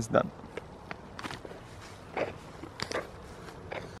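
A paper bag rustles.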